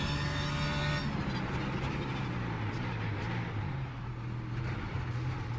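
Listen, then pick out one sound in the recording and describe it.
A racing car engine drops in pitch as the car brakes for a corner.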